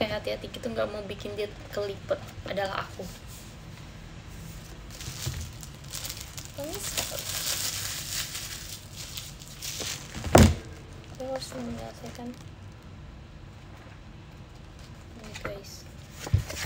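Book pages flip and rustle.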